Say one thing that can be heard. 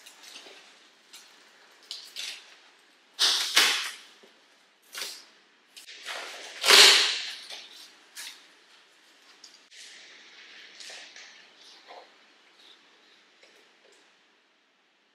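Cardboard rustles and scrapes as a box is opened by hand.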